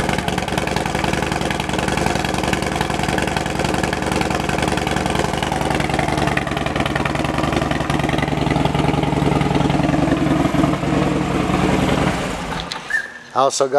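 A motorcycle engine idles with a steady, deep rumble, then cuts off.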